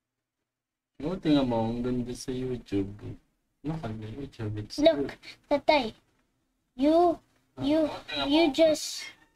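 A boy talks excitedly into a microphone.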